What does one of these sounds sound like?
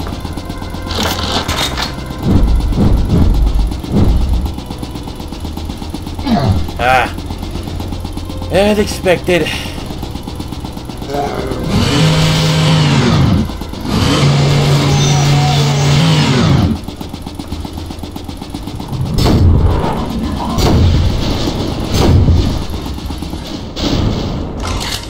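A chainsaw idles with a low, rattling drone.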